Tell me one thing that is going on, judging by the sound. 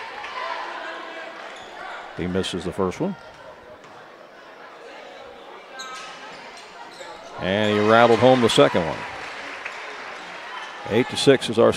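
A crowd murmurs and chatters in a large, echoing space.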